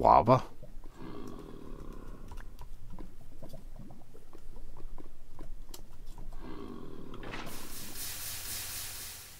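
Lava bubbles and pops softly.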